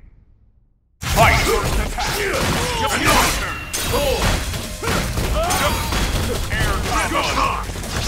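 Fighting game blows land with heavy thuds and whooshes.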